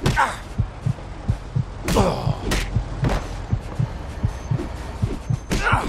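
Heavy punches thud in quick succession.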